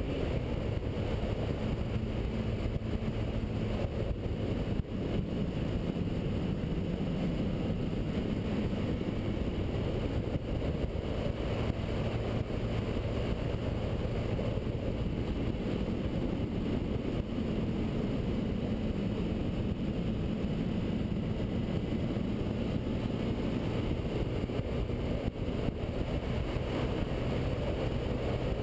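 A motorcycle engine hums steadily up close as it rides.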